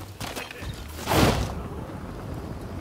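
A glider's cloth wing snaps open with a loud whoosh.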